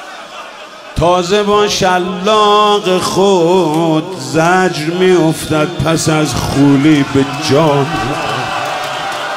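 A large crowd chants along in unison.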